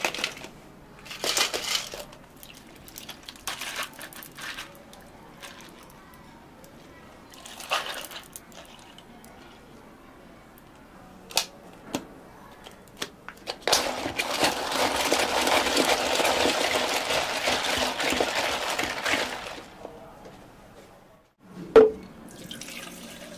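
Liquid pours and splashes into a cup.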